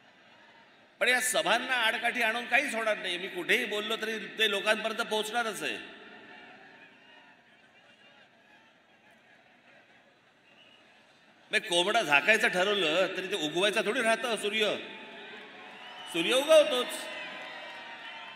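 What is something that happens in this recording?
A man speaks loudly and forcefully into a microphone, heard through loudspeakers in a large open space.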